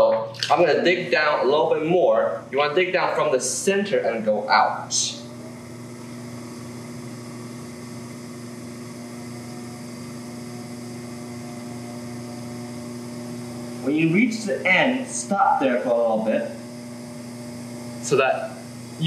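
A potter's wheel motor hums steadily.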